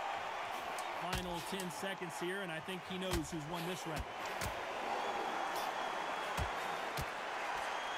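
Boxing gloves thud against a body in quick punches.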